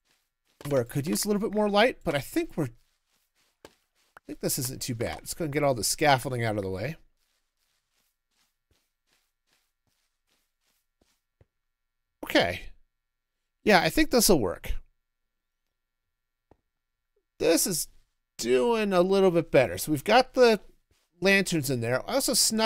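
A middle-aged man talks with animation into a close microphone, in bursts with pauses.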